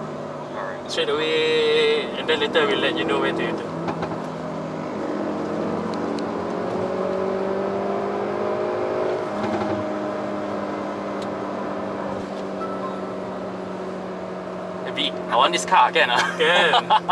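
A car engine hums steadily, rising and falling slightly in pitch.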